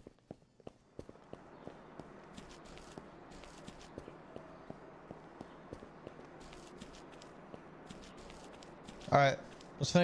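Footsteps crunch along on gravel outdoors.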